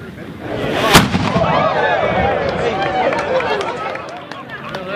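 A crowd cheers after a cannon shot.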